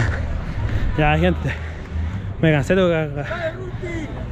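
A young man speaks excitedly right up close.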